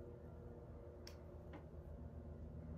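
Metal earrings clink softly against fingers.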